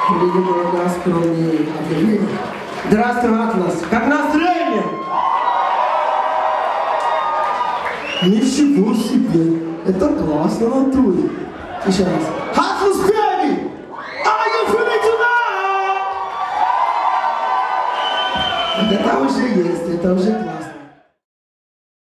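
A live band plays loudly through loudspeakers in a large hall.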